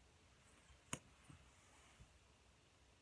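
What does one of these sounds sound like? A plastic cosmetic tube clicks as it is handled.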